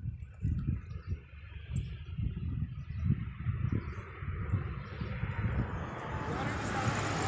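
Wind gusts and rumbles against the microphone outdoors.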